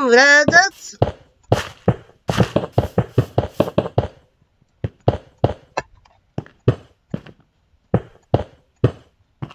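Stone blocks are placed one after another with short, dull thuds.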